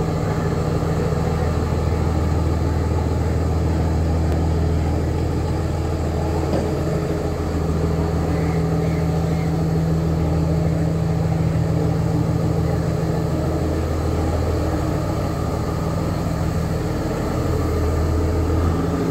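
A train engine drones steadily with a low hum.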